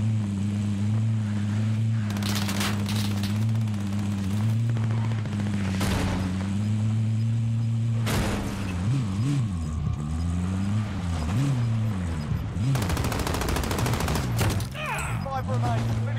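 A car engine hums steadily and revs up and down as the vehicle drives over rough ground.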